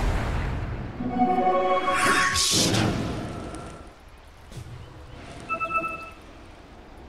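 Game sound effects chime and clink during a fight.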